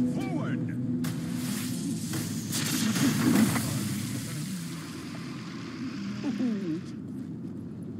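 Magic spells crackle and whoosh in a video game fight.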